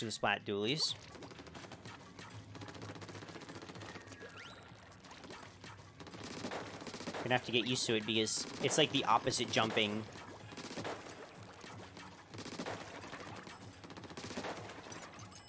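Game sound effects of splattering ink and shots play.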